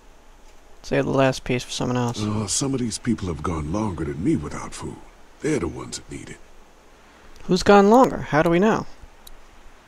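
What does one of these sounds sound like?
A man speaks in a low, calm voice, pausing between phrases.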